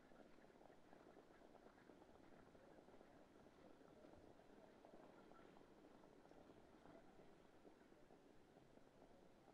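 Sulky wheels roll and rattle over the dirt.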